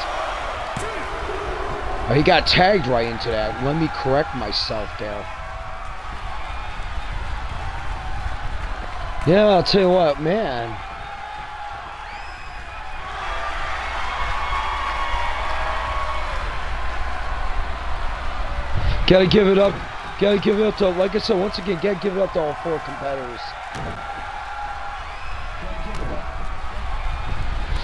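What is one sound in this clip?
A crowd cheers and murmurs in a large arena.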